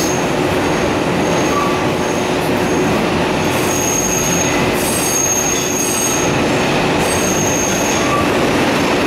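Train wheels squeal high and shrill on the track.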